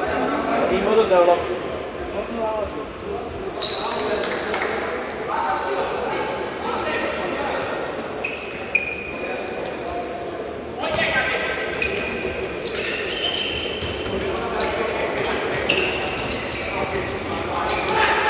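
Spectators murmur and call out in a large echoing hall.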